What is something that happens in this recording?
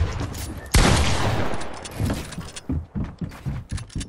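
A pickaxe smashes against a wall with loud crashing thuds.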